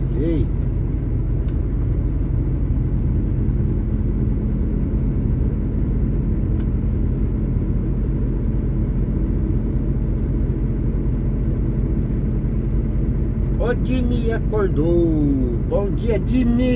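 A vehicle engine drones steadily while driving along a road.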